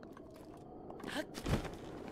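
A rush of wind whooshes past as a figure leaps into the air.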